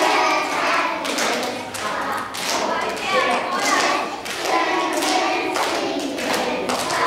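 A choir of young children sings together in a large echoing hall.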